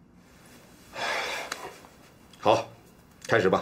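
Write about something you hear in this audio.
A man answers briefly and calmly.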